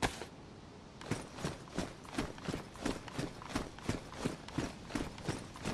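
Footsteps crunch steadily on a grassy dirt path.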